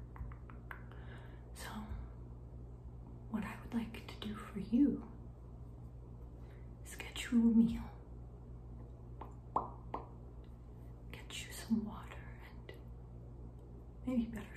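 A young woman whispers softly, very close to a microphone.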